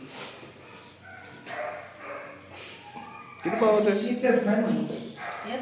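A dog yelps and whines close by.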